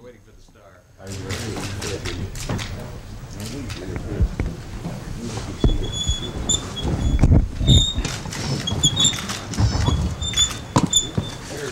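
Several men talk and murmur at once.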